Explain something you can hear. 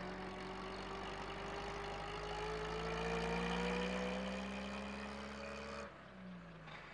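A small van engine hums as the van drives away.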